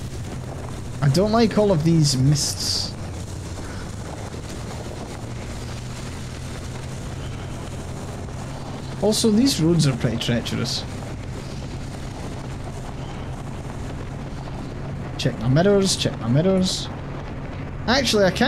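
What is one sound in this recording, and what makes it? A young man talks into a microphone in short bursts.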